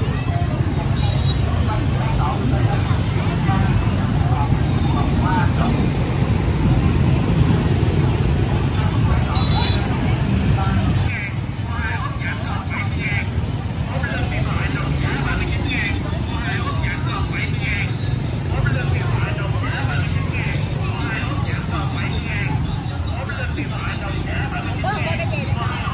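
A crowd chatters in a busy outdoor street.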